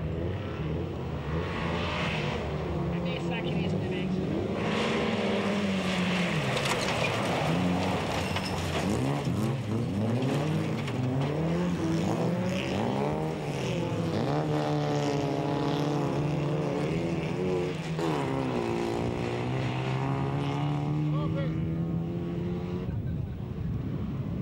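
Several race car engines roar at full throttle on a dirt track.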